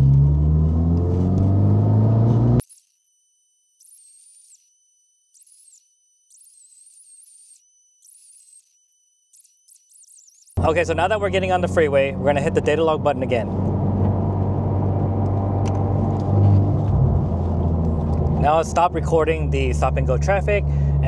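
A car engine drones steadily while driving.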